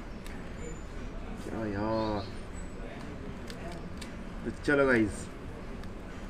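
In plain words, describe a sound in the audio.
A foil sachet crinkles in someone's fingers.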